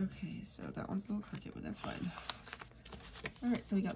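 A sticker sheet crinkles as it is handled.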